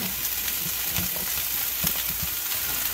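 Sliced vegetables drop into a pan with soft thuds.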